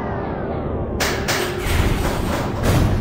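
Heavy metal doors slide open with a hiss.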